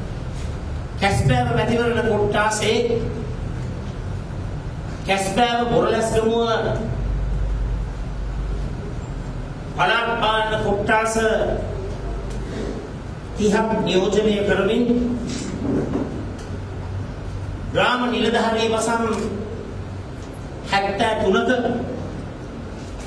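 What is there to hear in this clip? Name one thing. A man speaks forcefully into microphones, in short bursts with pauses.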